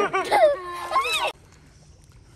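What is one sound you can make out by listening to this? Water splashes as a young girl slaps the surface.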